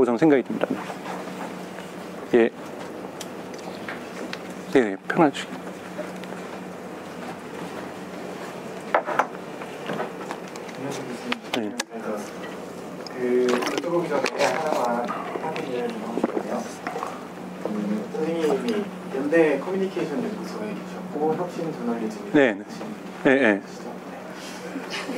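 A man speaks to an audience through a microphone in a large room.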